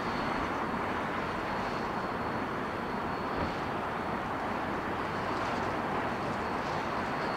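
City traffic hums steadily in the distance outdoors.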